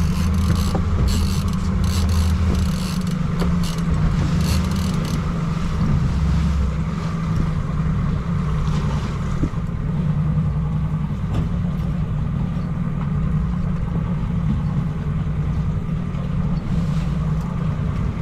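Waves slosh against a boat's hull.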